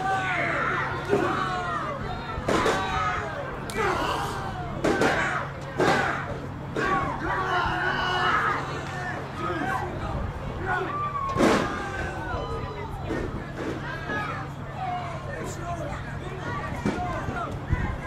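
A crowd shouts and cheers loudly nearby.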